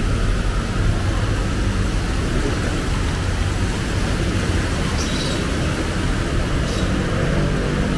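A vehicle engine rumbles while driving through floodwater.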